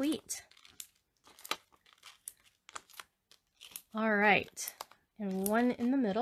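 Stiff paper rustles and taps as it is handled up close.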